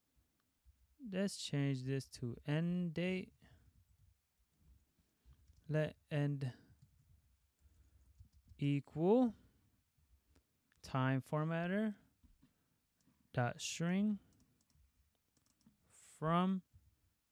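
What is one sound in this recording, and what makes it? A young man talks calmly into a close microphone, in short phrases with pauses.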